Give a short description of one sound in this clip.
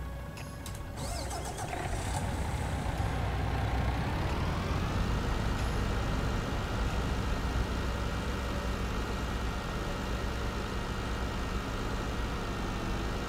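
A truck engine hums and revs up as the truck pulls away.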